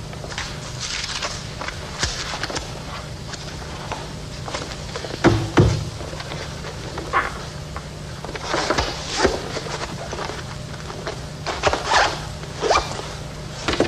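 A man rustles and shuffles papers.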